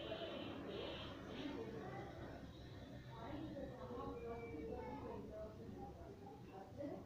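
Chalk scrapes on a board.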